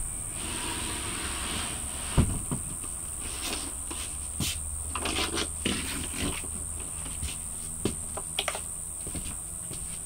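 Objects knock and thud as they are moved about.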